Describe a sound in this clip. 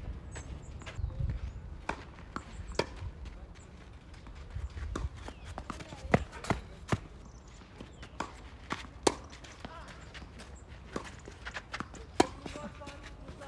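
Tennis shoes scuff and slide on a clay court.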